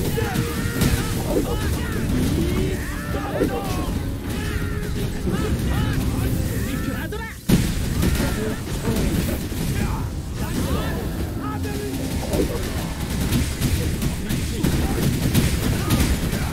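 Game combat effects clash and explode with magic whooshes.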